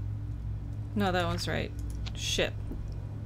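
A young woman speaks briefly and expressively into a microphone close by.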